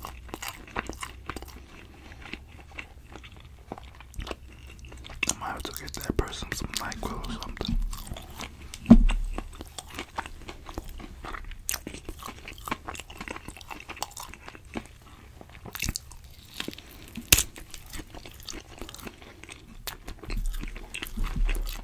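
A man chews food close to a microphone, with wet crunching and smacking.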